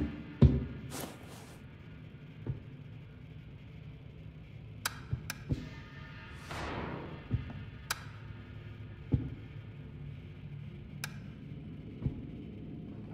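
Footsteps thud slowly on a hollow floor.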